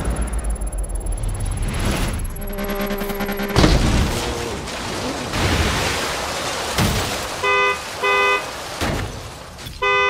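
A car engine roars at high revs, then dies away.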